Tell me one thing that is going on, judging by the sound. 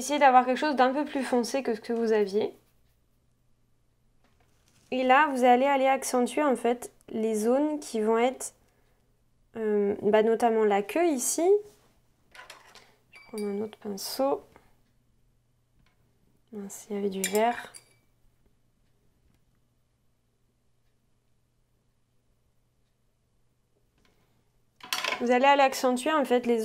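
A young woman talks calmly and closely into a microphone, in short phrases with pauses.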